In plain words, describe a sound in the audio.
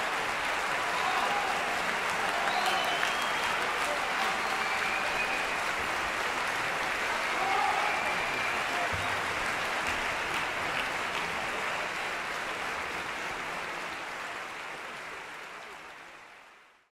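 Applause fills a large concert hall and fades away.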